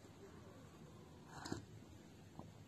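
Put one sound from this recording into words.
A man sips noisily from a cup.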